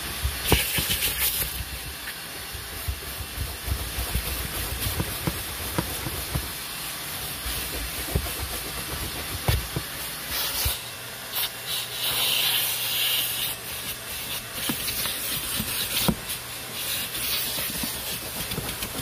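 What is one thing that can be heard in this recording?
A vacuum nozzle scrapes and rattles over carpet, sucking up grit.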